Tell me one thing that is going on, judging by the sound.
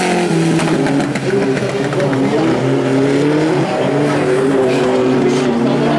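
Gravel sprays and rattles under the spinning tyres.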